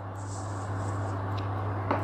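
Salt grains patter softly into a pot of water.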